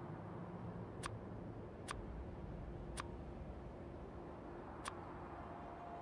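Soft interface clicks tick now and then.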